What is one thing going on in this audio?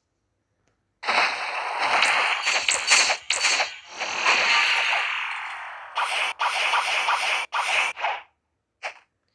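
Sword swings whoosh and strike in quick bursts.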